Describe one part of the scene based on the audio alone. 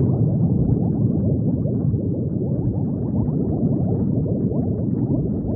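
Bubbles gurgle and burble steadily underwater.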